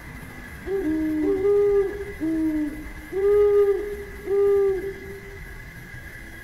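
A dove coos in a short run of soft, bubbling, trilling notes, close by.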